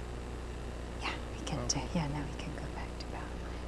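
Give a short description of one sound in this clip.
A woman speaks briefly and quietly into a microphone.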